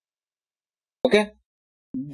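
A man speaks briefly into a microphone, in a lecturing tone.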